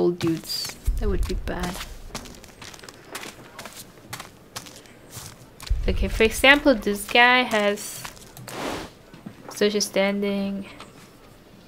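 A young woman talks calmly into a close microphone.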